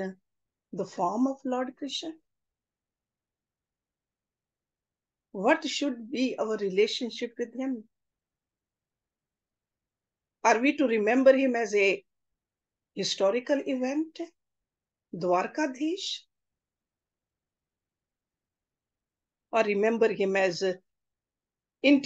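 A middle-aged woman speaks calmly in short phrases with pauses, heard through an online call.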